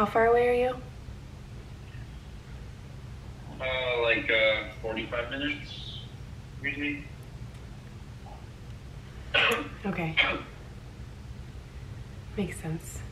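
A young woman speaks close to the microphone in short, playful bursts.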